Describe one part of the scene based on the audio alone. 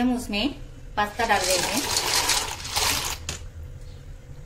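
Pasta pours and splashes into boiling water.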